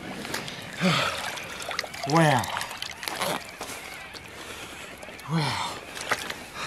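Water splashes and sloshes around a man wading.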